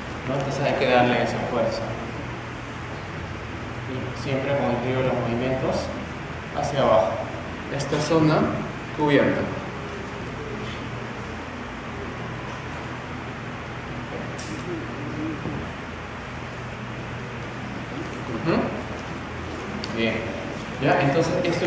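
A man speaks calmly to an audience in a room with a slight echo.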